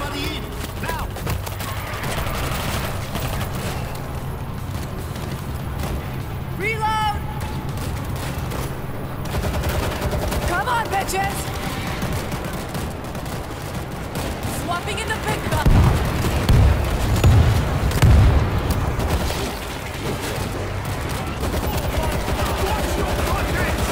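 A zombie horde snarls and growls.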